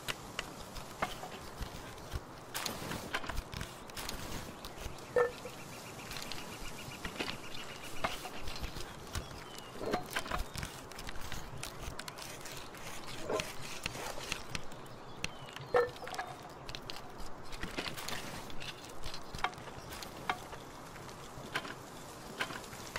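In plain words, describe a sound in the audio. A character hammers and taps at a wooden workbench with short knocks.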